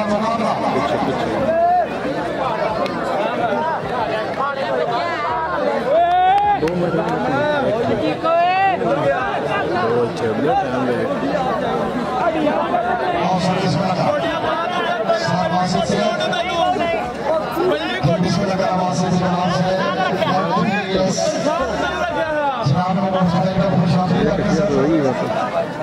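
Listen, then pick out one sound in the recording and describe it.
A large outdoor crowd chatters and calls out.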